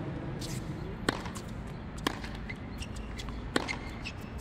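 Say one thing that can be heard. A tennis ball bounces on a hard court before a serve.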